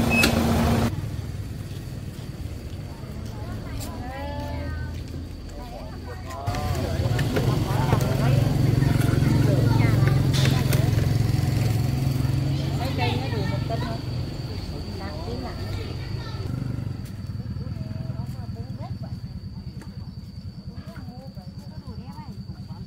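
Women talk calmly nearby.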